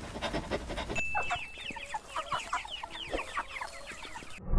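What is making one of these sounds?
Small chicks peep in high, rapid chirps.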